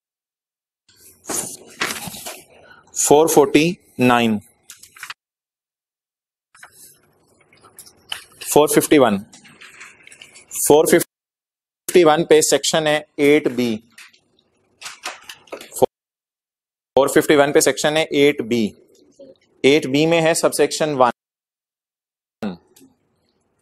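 A man speaks calmly into a microphone, reading out in bursts with pauses.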